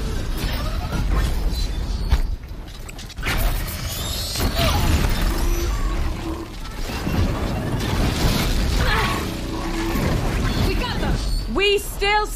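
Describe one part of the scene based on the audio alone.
Explosions boom loudly.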